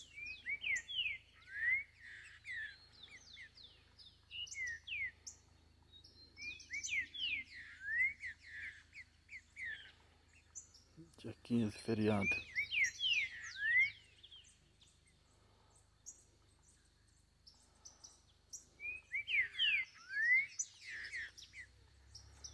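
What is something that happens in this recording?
A bird sings a rapid series of sweeping whistles nearby.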